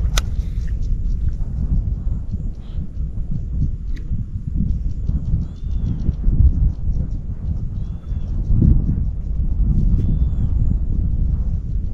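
A fishing reel clicks rapidly as its line is wound in.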